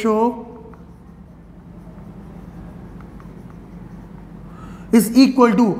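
A man speaks clearly in a lecturing tone.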